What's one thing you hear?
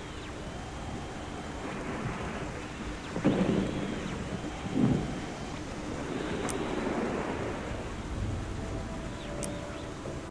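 An old radio hisses and crackles with static and whistling tones.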